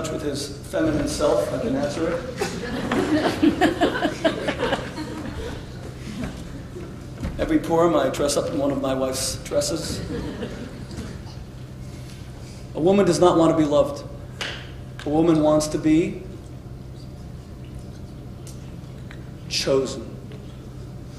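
A man speaks calmly to an audience, heard from a distance.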